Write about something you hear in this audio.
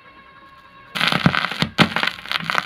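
Music plays from a vinyl record, loud and crackly.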